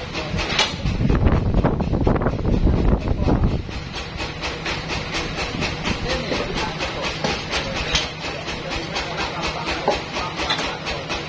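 A band sawmill's motor runs with a steady hum.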